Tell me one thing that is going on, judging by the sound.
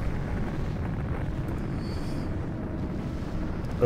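A large explosion booms and rumbles.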